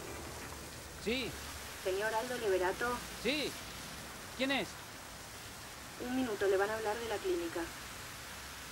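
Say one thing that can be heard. A man talks on a phone close by.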